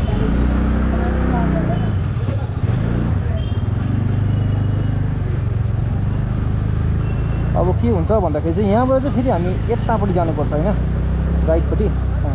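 A scooter engine hums steadily up close.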